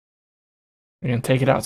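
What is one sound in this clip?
A man speaks into a close microphone.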